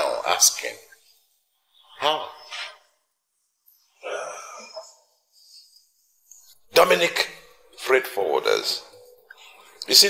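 A middle-aged man speaks tersely, close by.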